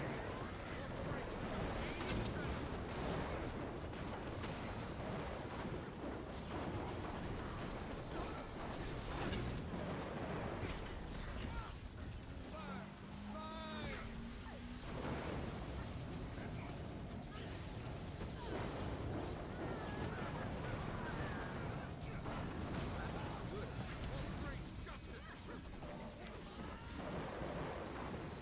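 Game spells crackle and boom in a dense, constant battle din.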